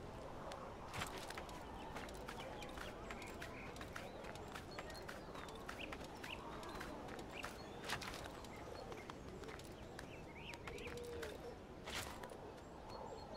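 Hands grab and scrape on stone while climbing.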